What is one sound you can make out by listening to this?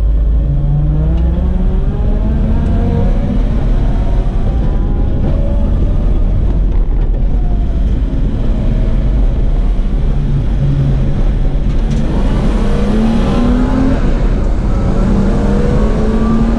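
A car engine roars loudly from inside the cabin, revving up and down through the gears.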